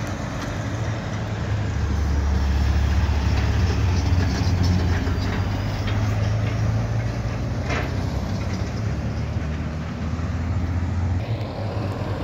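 A logging truck's diesel engine rumbles loudly as it passes and drives away.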